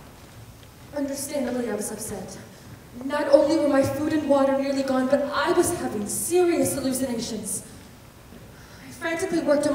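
A young actor speaks loudly and with expression.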